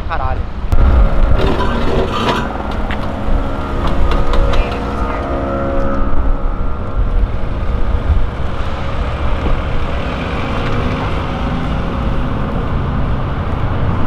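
Car engines rumble as cars roll slowly past nearby.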